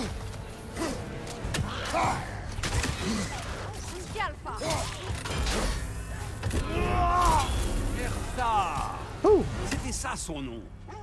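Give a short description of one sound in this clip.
Heavy blows thud and clang.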